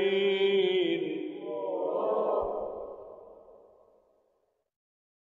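A man chants in a long, drawn-out voice through a microphone with echo, and the voice fades away.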